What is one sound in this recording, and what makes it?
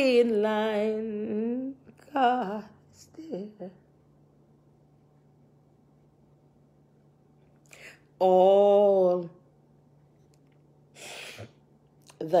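A middle-aged woman sobs and wails close by.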